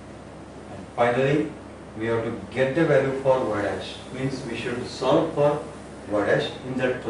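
An elderly man speaks calmly and clearly, as if teaching.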